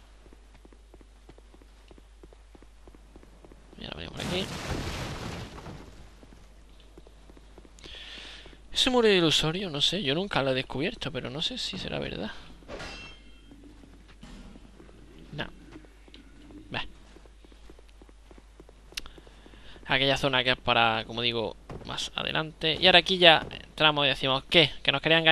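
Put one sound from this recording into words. Armoured footsteps thud on stone.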